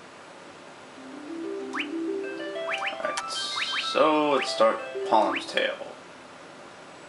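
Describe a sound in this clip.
Bright electronic game music plays a rising run of notes.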